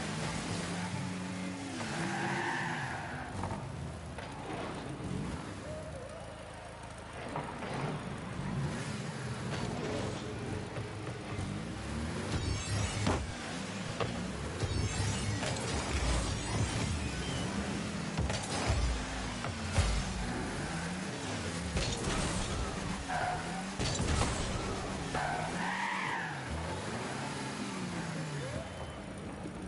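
A toy-like car engine hums and revs steadily.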